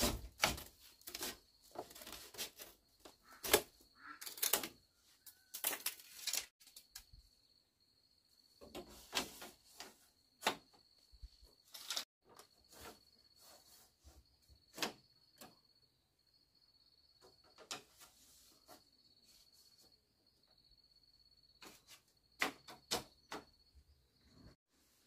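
Bamboo strips clack and rattle as they are woven into a fence.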